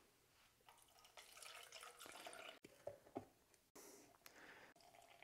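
Liquid pours into a cup.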